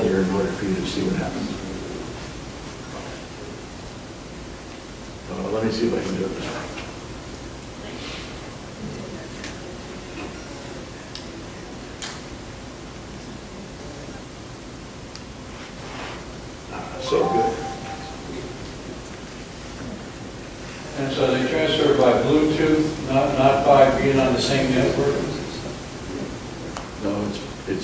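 An elderly man speaks calmly through a webcam microphone, with pauses.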